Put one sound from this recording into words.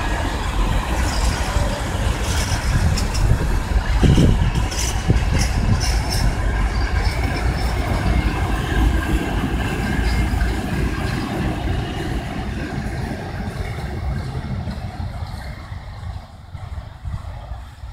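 A long freight train rumbles past close by, its wheels clattering over the rail joints and slowly fading.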